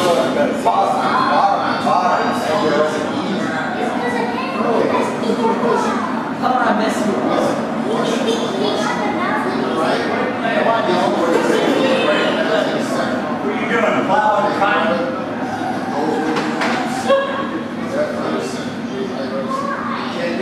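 Adults and children chatter nearby.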